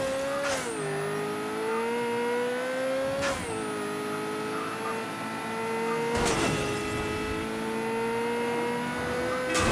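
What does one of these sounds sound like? A car engine revs high and drops in pitch at each gear change.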